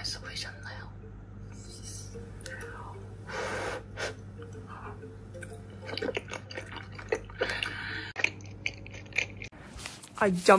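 A young woman chews and slurps food, heard faintly through a small speaker.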